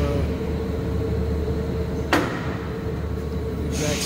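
A metal part knocks down onto a metal table.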